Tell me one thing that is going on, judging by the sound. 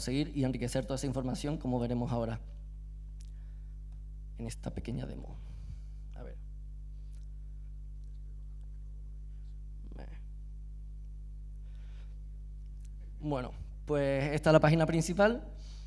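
A man speaks calmly into a microphone in a large room, with pauses.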